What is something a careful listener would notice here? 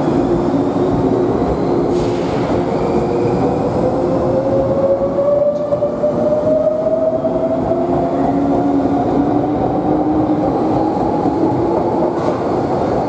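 An electric train motor whines, rising slowly in pitch.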